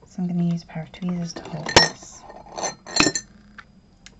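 A small object clicks as it is set down on a table.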